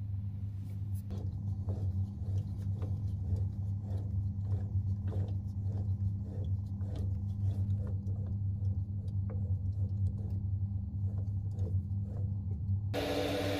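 A lathe chuck clicks and ticks as it is turned slowly by hand.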